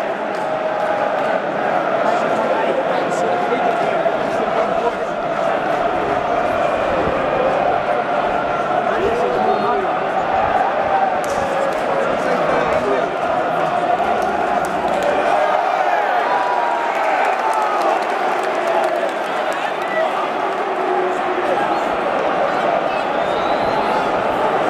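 A large stadium crowd sings and chants loudly together.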